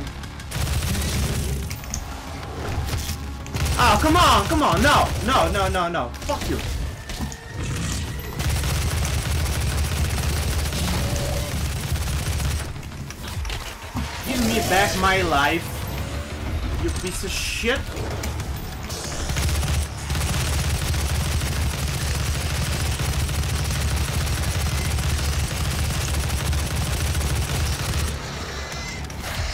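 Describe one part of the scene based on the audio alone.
Heavy guns fire in rapid bursts among booming explosions.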